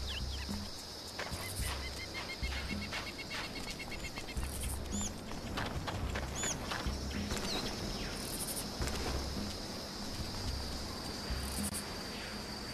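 Footsteps thud steadily on stone and ground.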